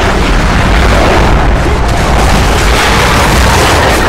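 An explosion booms and debris scatters.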